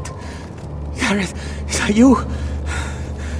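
A wounded man speaks weakly in a hoarse voice.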